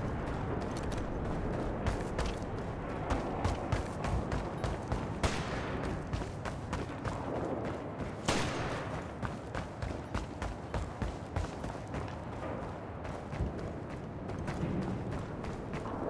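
Footsteps thud steadily on hard floors.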